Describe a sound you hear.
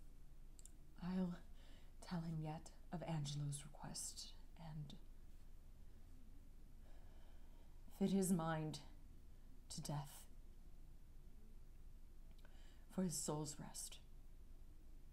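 A young woman speaks in short, shaky phrases close by.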